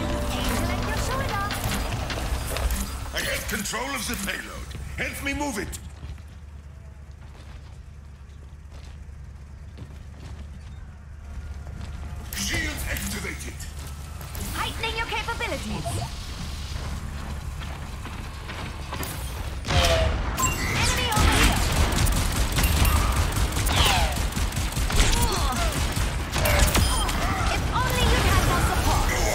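Energy weapons fire in quick bursts.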